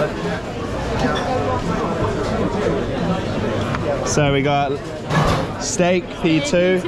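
Many people chatter in a busy, noisy room.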